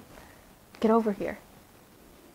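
A young woman speaks calmly on a phone.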